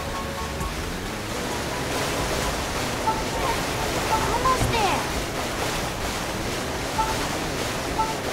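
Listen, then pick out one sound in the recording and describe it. A jet ski engine roars steadily.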